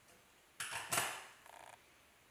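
Metal rods clatter against a wooden bench.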